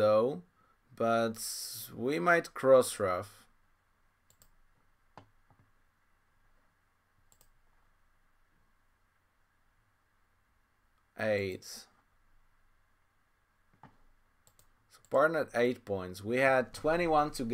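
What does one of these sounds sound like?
A man talks calmly and close to a microphone, pausing between phrases.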